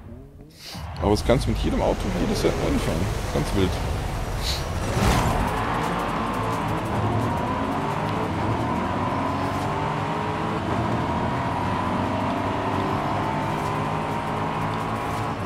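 A racing car engine roars and revs higher as it speeds up.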